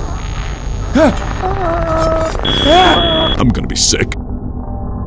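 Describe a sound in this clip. Harsh electronic distortion crackles in a short burst.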